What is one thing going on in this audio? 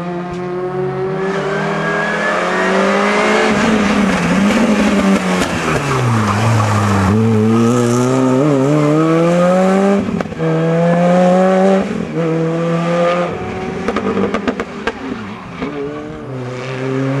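A second rally car engine roars closer and revs hard.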